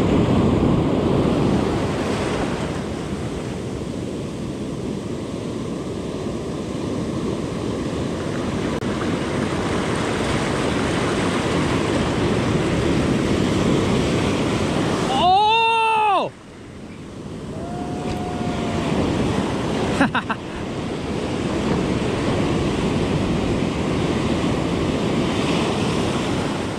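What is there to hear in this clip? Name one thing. Waves break and wash over the shore close by.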